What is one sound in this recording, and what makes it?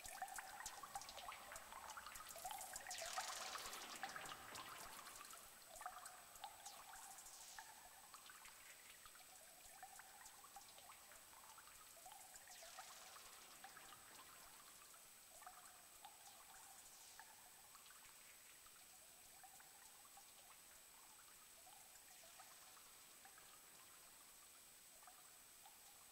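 Electronic synthesizer notes play in a quick repeating pattern.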